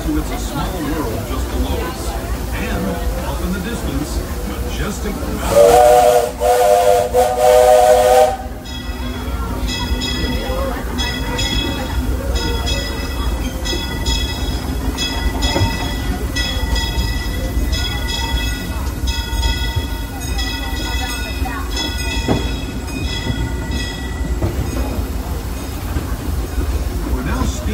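A small train rumbles and rattles along its track.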